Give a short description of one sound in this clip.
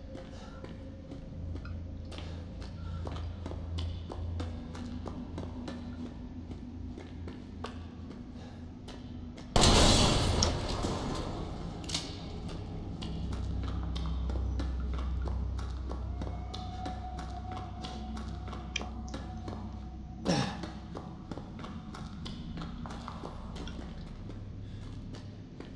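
Footsteps crunch slowly on a gritty floor in an echoing tunnel.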